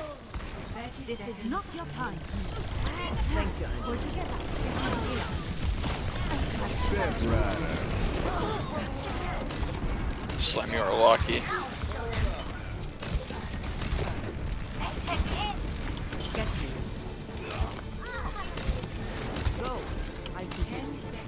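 Gunfire and game effects crackle and boom from a video game.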